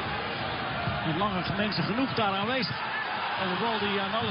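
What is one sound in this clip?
A stadium crowd cheers loudly after a goal attempt.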